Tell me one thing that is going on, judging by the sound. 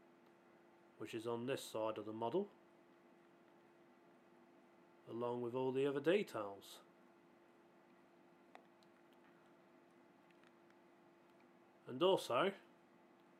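A model train's horn sounds in short blasts.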